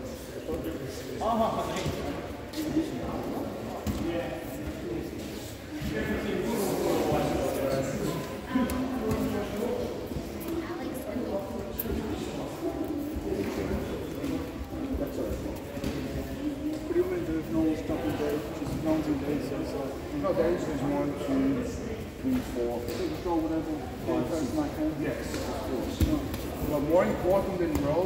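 Many adults talk at once in a large echoing hall.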